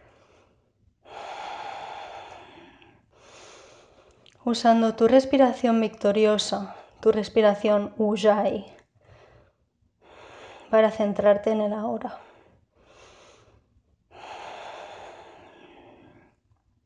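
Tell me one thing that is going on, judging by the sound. A woman breathes out slowly and deeply.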